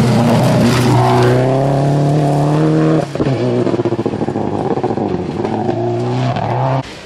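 A rally car engine revs rise and fall sharply.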